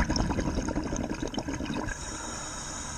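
Air bubbles burst and gurgle loudly from a diver's regulator underwater.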